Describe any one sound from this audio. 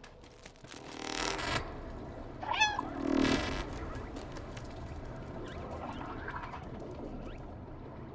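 A cat's paws pad softly on a hard floor.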